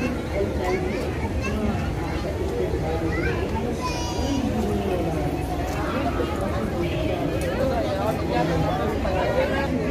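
Several people talk quietly in the background.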